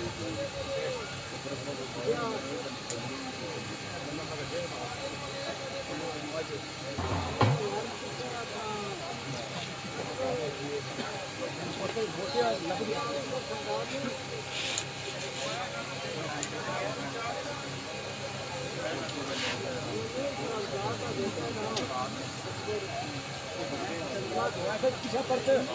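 Men in a crowd talk over one another outdoors.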